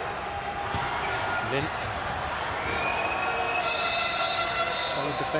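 A large crowd roars and cheers steadily in an echoing arena.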